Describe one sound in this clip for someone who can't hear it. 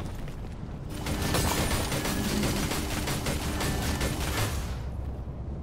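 Rapid crackling energy blasts burst one after another.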